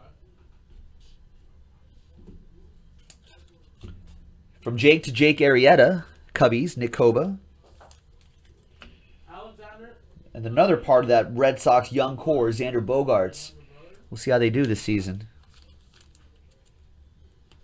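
Trading cards rustle and slide against each other.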